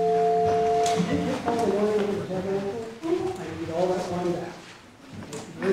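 A congregation sings together.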